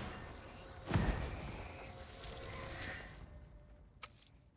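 A sword swings with a loud whoosh.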